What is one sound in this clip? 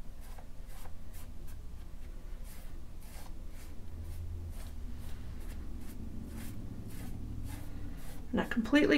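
A brush dabs and scrubs softly on paper.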